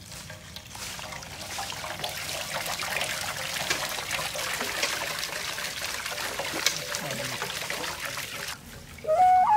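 Water pours into a cloth and splashes into a pot.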